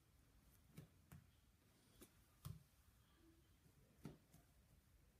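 Fingers bump and rub against a phone held close.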